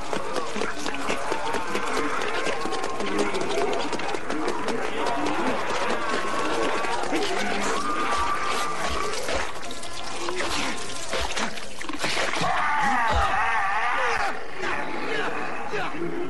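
A crowd of men and women groan and moan loudly.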